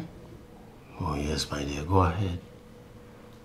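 An older man speaks in a deep voice nearby.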